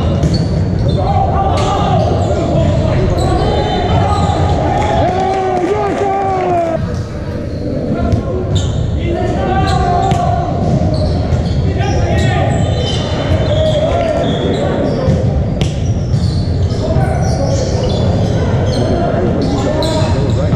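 Sneakers squeak on a hardwood floor.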